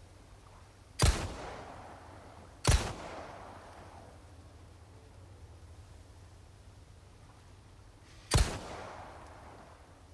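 A shotgun fires loud blasts that echo outdoors.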